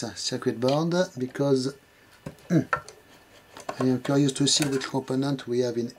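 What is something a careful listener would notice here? A screwdriver clicks and scrapes against small metal parts.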